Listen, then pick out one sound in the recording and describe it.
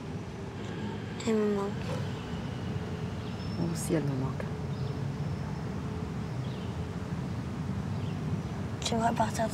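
A young girl speaks quietly and sadly up close.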